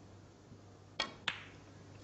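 A cue strikes a snooker ball with a sharp click.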